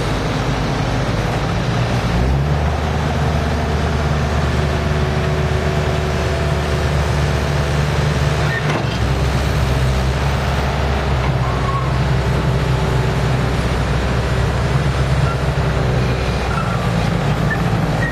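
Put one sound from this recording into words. Steel tracks clank and squeak as a loader turns.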